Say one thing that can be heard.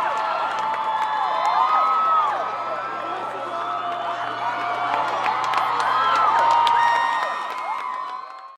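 People in a large crowd whistle shrilly.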